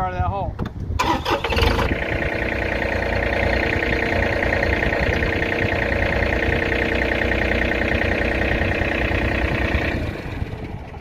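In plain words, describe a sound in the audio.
A tractor engine runs loudly and steadily.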